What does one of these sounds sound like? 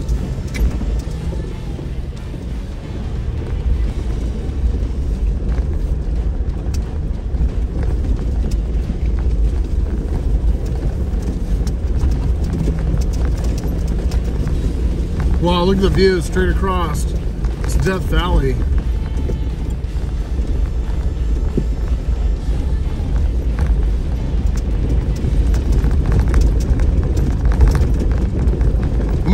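A vehicle engine rumbles steadily while driving slowly.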